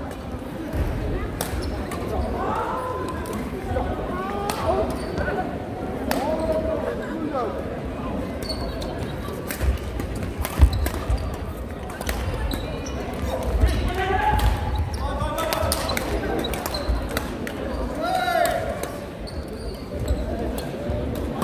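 Shuttlecocks are struck with sharp pops of rackets, echoing in a large hall.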